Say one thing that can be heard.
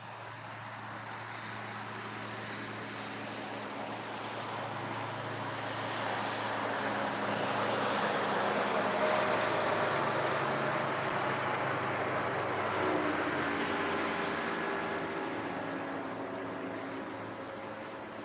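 Wind blows steadily outdoors, swelling and then easing.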